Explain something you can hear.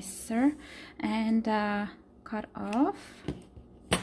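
Scissors snip through yarn.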